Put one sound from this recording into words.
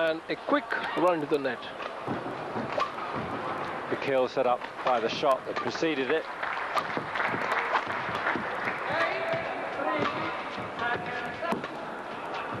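A large crowd murmurs in an echoing arena.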